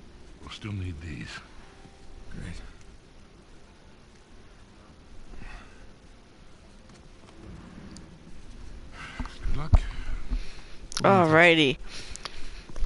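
An older man speaks calmly and quietly.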